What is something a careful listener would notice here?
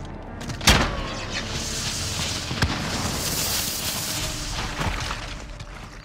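A smoke grenade hisses loudly.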